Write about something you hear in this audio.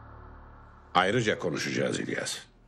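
An older man speaks in a deep, serious voice.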